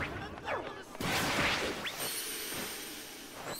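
A burst of electric energy crackles and whooshes.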